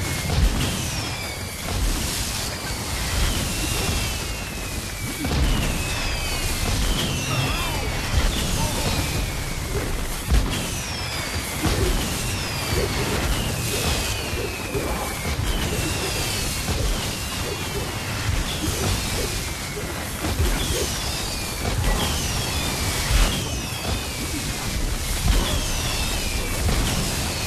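Whooshing spell sounds swoop down in pitch again and again.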